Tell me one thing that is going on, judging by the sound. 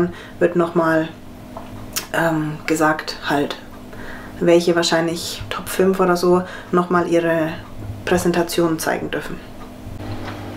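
A young woman speaks calmly and close up.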